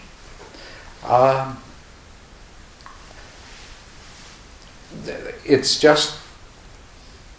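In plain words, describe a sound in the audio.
An elderly man speaks calmly and briefly, close to a microphone.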